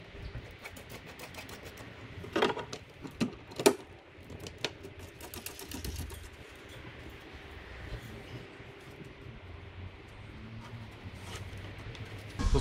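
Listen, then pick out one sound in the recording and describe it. Plastic parts knock and click.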